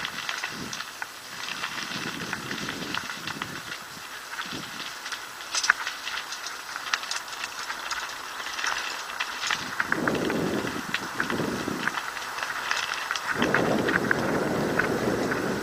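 A mountain bike rattles and clatters as it descends a rough paved lane.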